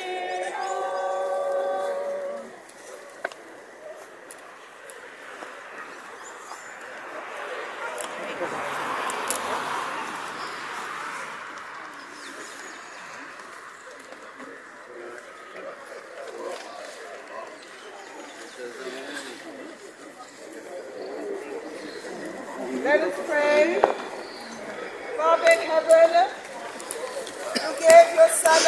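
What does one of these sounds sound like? A crowd of men and women murmurs quietly outdoors.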